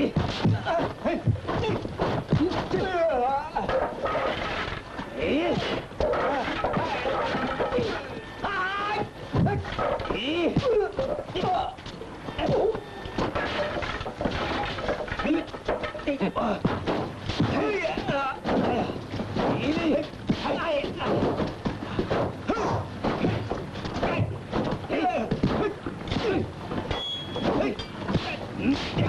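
An older man shouts while fighting.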